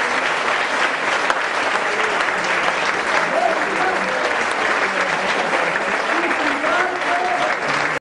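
A crowd of people chatters loudly in a large echoing hall.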